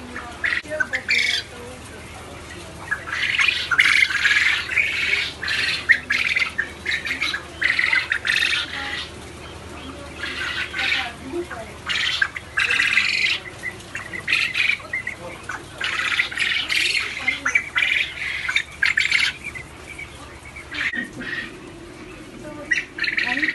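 Many small birds chirp and squawk in bursts, close by.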